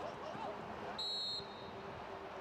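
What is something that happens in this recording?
A referee's whistle blows one short blast.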